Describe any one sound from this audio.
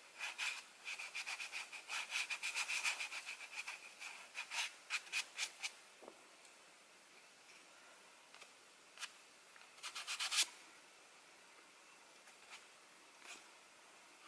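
Fingers tap and brush on a thick paper page.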